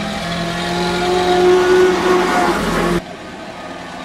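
A vintage open-top car's engine runs as the car drives past.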